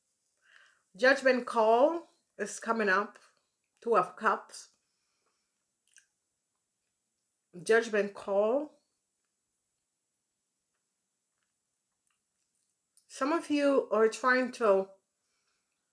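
A woman speaks calmly and slowly into a close microphone, with long pauses.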